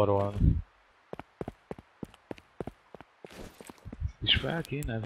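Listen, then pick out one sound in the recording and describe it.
Footsteps thud on pavement.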